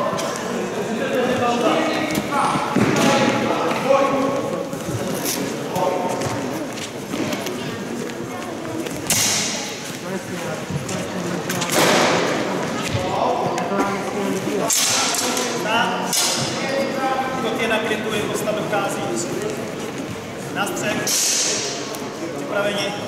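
Men talk in a large echoing hall.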